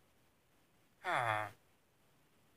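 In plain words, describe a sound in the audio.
A villager creature grunts with a short nasal hum.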